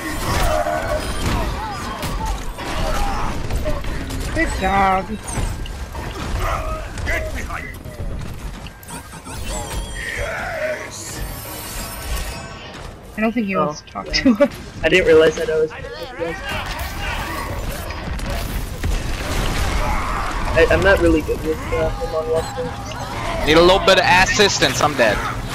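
Gunfire crackles in a video game battle.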